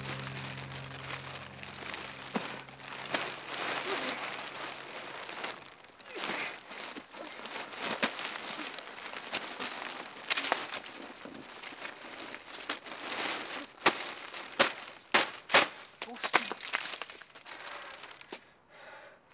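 Plastic bags rustle and crinkle loudly up close.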